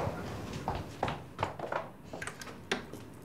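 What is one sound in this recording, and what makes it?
A door latch rattles and clicks.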